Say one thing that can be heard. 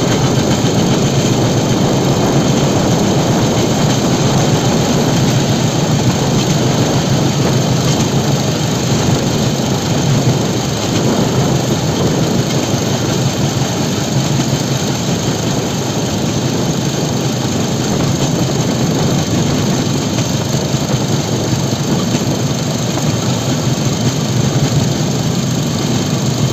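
A small engine drones steadily close by.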